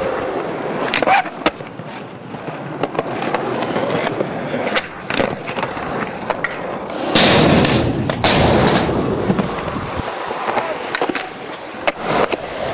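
A skateboard clacks sharply against a hard edge.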